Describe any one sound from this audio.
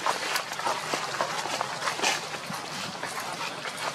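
Monkeys scamper across dry leaves, which rustle and crunch.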